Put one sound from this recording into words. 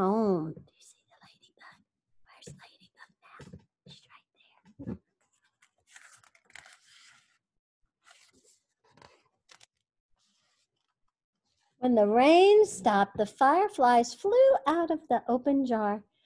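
A woman reads aloud expressively, close by.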